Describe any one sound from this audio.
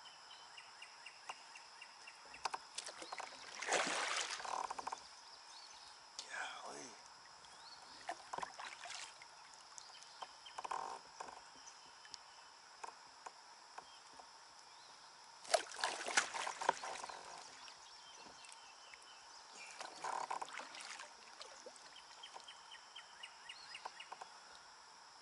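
A fishing reel clicks as it is cranked.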